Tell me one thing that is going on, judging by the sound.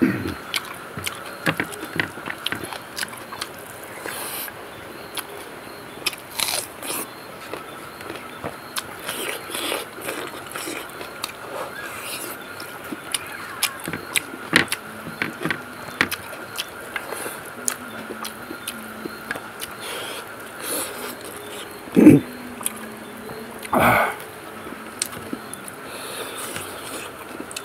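Fingers squish and mix sticky rice on a plate.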